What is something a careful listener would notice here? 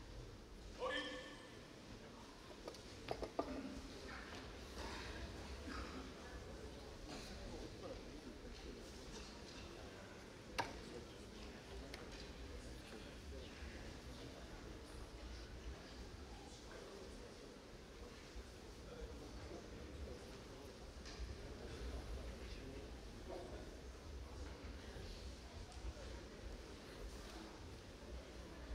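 A crowd murmurs quietly in a large echoing hall.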